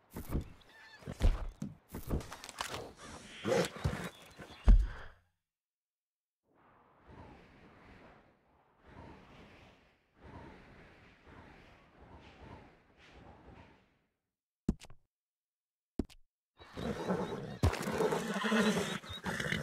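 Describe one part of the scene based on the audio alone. Horse hooves thud on grass.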